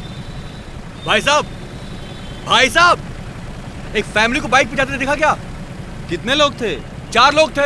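A man speaks loudly with animation.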